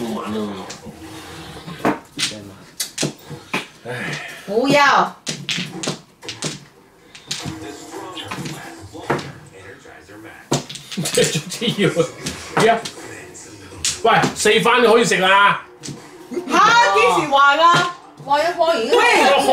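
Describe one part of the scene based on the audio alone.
Mahjong tiles clack and click on a table.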